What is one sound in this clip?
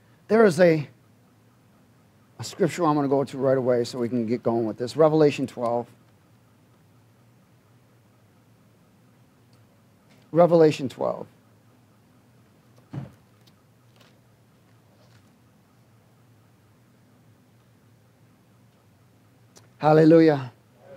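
A man speaks with emphasis through a microphone, with long pauses in between.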